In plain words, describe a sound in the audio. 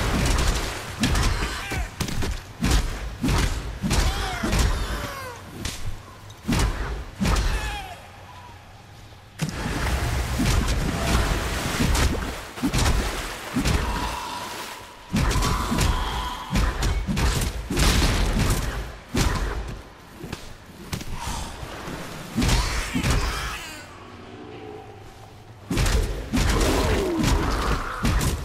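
Magic spells crackle and burst in rapid impacts.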